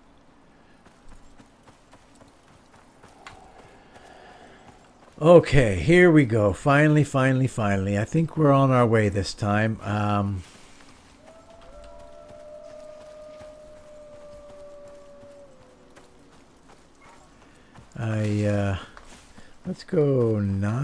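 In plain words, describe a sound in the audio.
Footsteps swish softly through tall grass.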